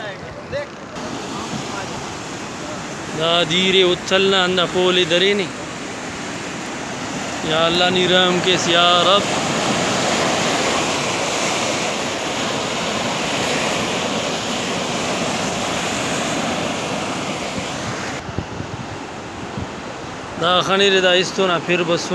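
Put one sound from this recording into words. Floodwater rushes and churns loudly outdoors.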